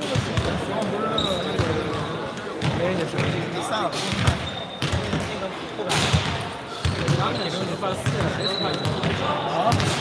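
Young people talk and call out in the distance.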